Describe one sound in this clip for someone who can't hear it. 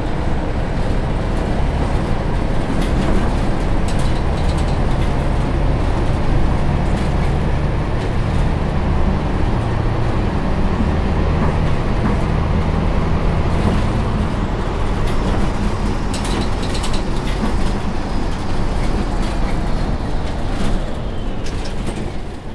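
A city bus engine drones as the bus drives along a road.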